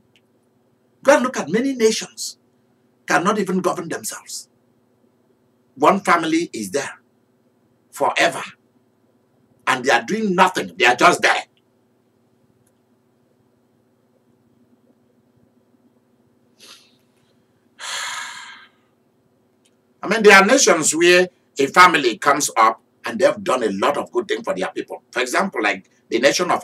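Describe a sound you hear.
A man speaks calmly and expressively into a microphone, pausing between phrases.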